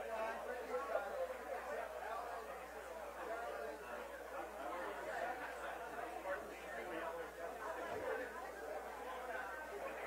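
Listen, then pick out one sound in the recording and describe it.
A large crowd of men and women chatters all at once indoors.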